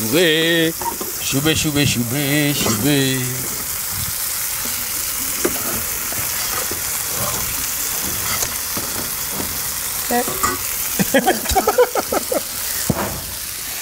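A spoon scrapes and stirs in a metal pan.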